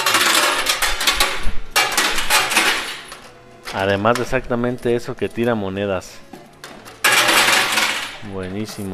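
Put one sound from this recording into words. Coins clatter and jingle as a machine pushes them.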